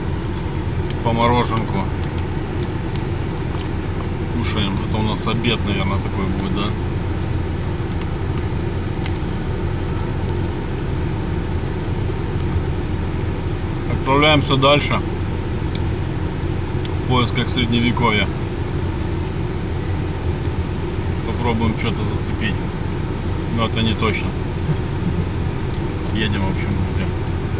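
A man speaks calmly close by, in short bursts.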